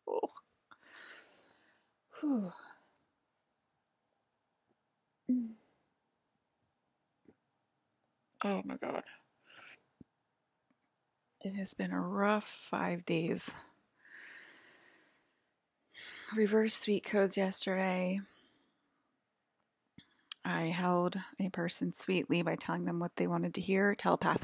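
A woman speaks calmly and haltingly, close by.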